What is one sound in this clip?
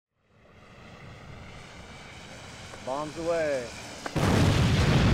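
A propeller plane drones overhead.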